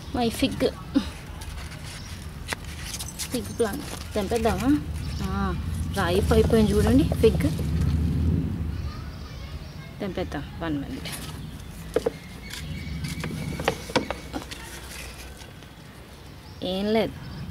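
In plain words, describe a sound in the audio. Leaves rustle as a hand brushes through a plant.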